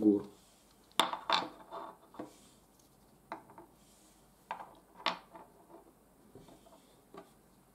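Wooden game pieces knock softly onto a wooden board.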